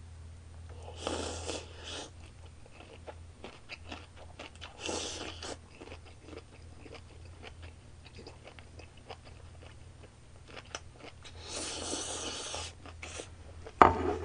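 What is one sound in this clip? A young man slurps noodles loudly, close to the microphone.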